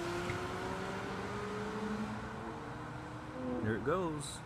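A car engine hums steadily and fades as the car drives away.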